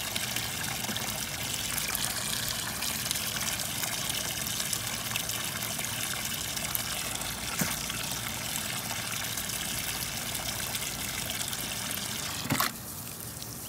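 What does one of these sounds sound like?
Water sprays from a hose into a tub with a steady hiss.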